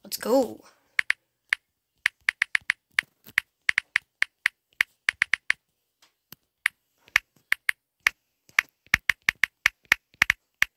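A phone keyboard clicks with quick taps.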